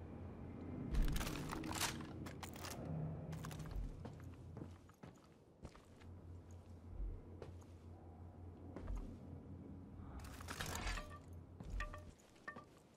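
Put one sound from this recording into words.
Heavy footsteps thud on metal stairs.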